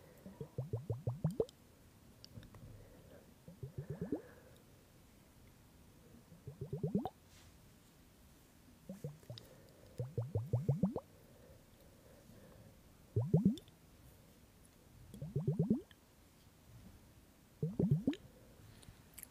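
Liquid glugs and gurgles in a glass bottle close to a microphone, in short bursts that rise in pitch.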